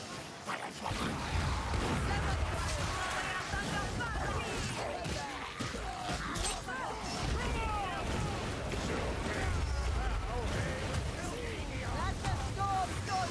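Creatures screech and squeal in a fight.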